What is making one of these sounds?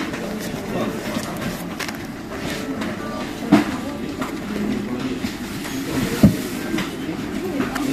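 A paper tag rustles and crinkles as it is handled.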